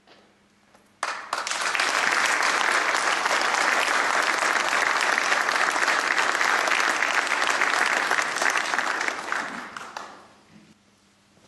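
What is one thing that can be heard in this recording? An audience applauds loudly and steadily, then the clapping fades away.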